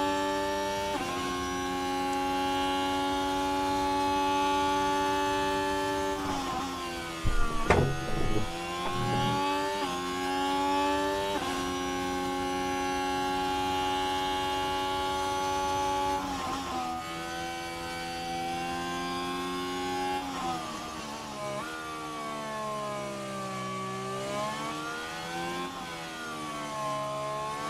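A racing car engine screams at high revs, rising and dropping as it shifts gears and brakes.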